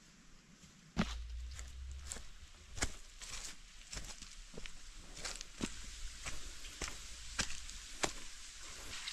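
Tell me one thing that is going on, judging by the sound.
Footsteps crunch on a rough dirt and stone path.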